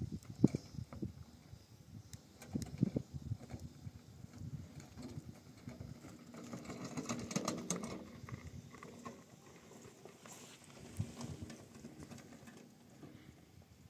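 A wheelbarrow rattles over stony ground.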